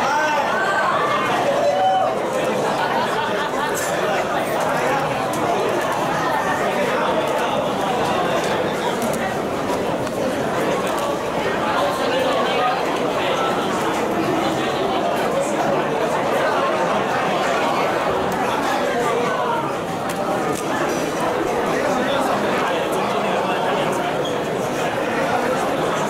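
A crowd of people chatters loudly all around in an echoing hall.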